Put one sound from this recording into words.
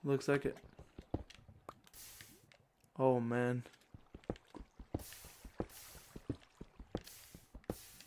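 Lava pops and hisses.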